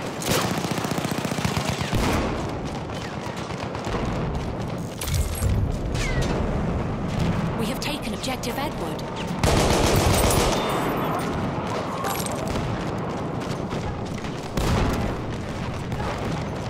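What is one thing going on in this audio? Gunfire and explosions boom and echo through a building.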